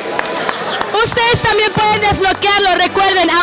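A young woman speaks loudly and excitedly into a microphone.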